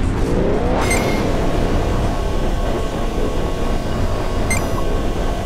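A spaceship engine rumbles deeply and steadily.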